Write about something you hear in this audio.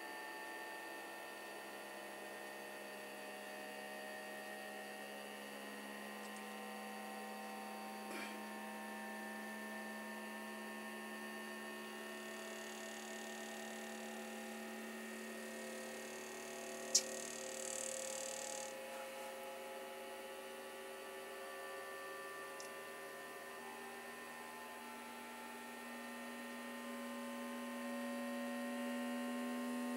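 A 3D printer's motors whine in steady, shifting tones.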